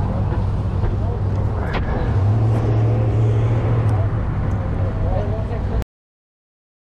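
A food truck's engine hums steadily outdoors.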